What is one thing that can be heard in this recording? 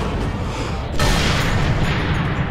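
A bullet smashes into stone with a burst of debris.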